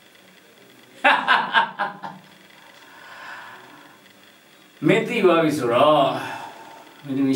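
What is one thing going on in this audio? A man speaks in a relaxed, amused voice close by.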